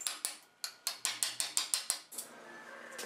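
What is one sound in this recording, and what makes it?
A hand tool clicks sharply in quick repeated snaps.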